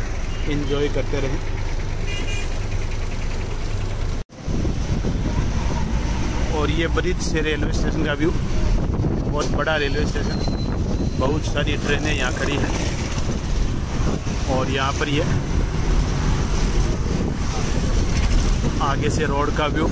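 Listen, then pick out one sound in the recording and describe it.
A vehicle engine rumbles steadily while driving along a road.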